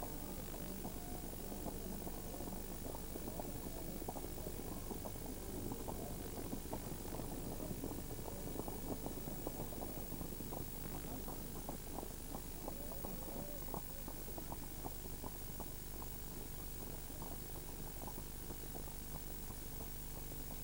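Horses' hooves clop on a paved road.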